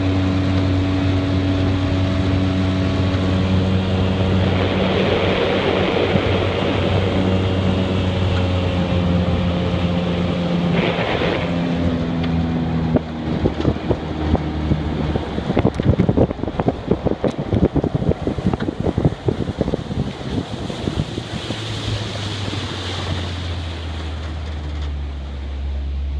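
A boat's outboard motor hums steadily.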